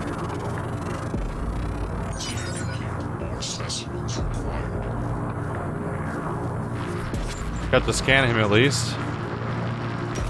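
A crackling energy burst flares.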